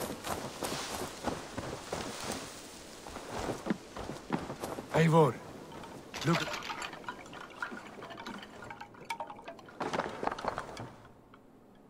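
Footsteps crunch on dirt and wooden boards.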